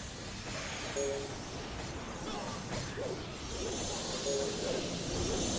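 Short chimes ring out from game alerts.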